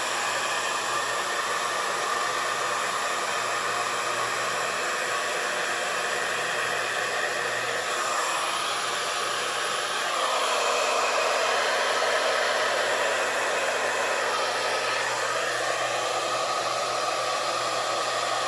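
A heat gun blows with a steady whooshing roar.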